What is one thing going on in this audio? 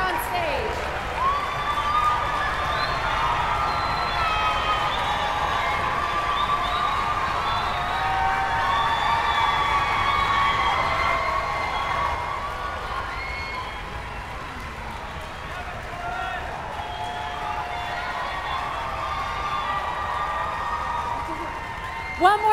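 A young woman speaks calmly through a microphone in a large hall.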